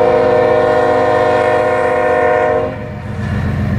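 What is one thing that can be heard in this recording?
A train horn blares loudly and close by.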